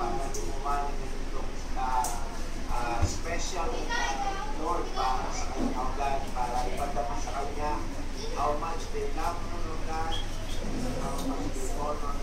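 A man speaks steadily over an online call through a loudspeaker.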